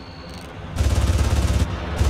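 Gunshots crack and splash into water.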